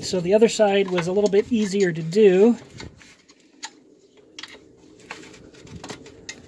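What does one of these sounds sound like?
Metal parts clink and scrape against a rusty wheel hub.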